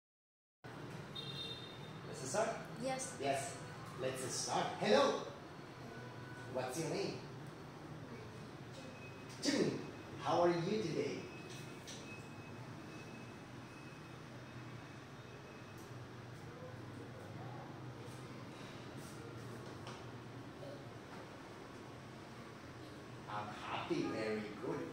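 A young boy answers quietly.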